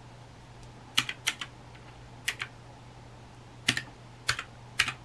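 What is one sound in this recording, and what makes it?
Plastic calculator keys click as they are pressed.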